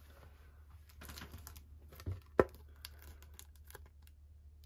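A plastic card sleeve rustles and crinkles softly as it is handled.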